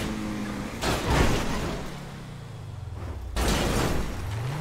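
A car crashes hard and tumbles.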